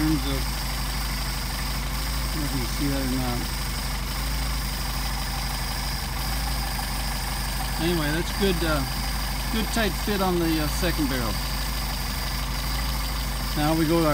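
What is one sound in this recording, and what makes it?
An engine idles with a steady low rumble.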